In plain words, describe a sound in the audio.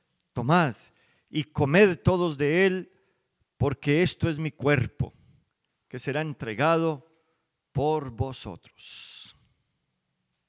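An elderly man speaks slowly and solemnly into a microphone, with pauses.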